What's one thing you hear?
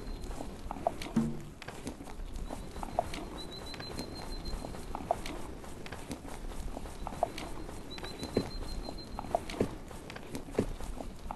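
Hooves thud steadily on snow.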